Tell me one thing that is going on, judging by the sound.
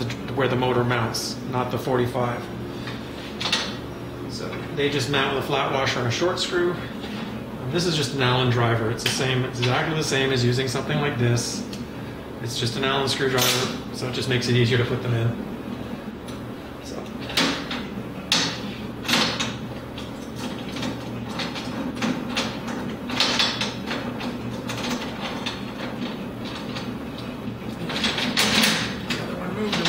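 Small metal parts clink and tap.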